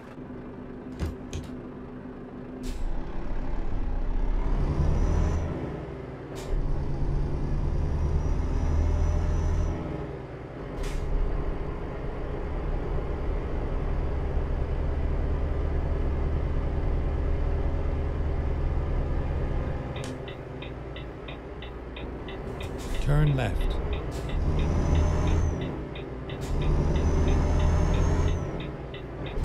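A heavy diesel truck engine rumbles as the truck pulls and accelerates.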